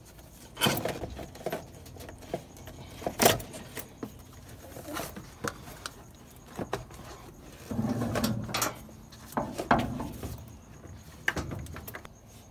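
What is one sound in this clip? A rubber intake hose creaks and knocks as hands twist it off.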